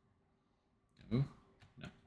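A wooden chest lid thuds shut.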